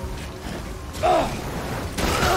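A heavy thud sounds as a character lands on rocks.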